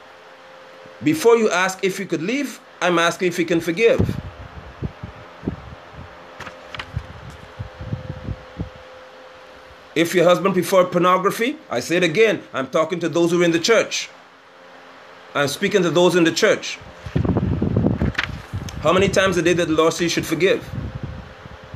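A man speaks close to a phone microphone, calmly and with pauses.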